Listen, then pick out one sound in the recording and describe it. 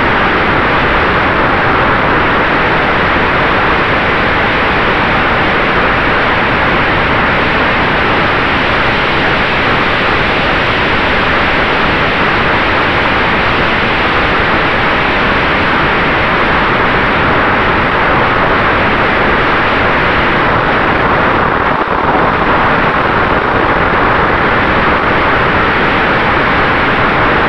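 Wind rushes loudly and steadily past the microphone outdoors.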